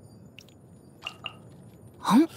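A soft game menu click sounds.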